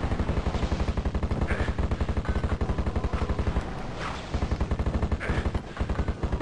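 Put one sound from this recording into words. A game weapon fires with sharp bursts.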